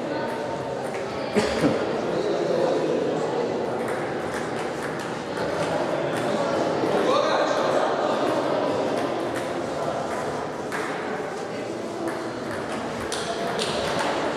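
Table tennis balls click sharply on tables and paddles in a large echoing hall.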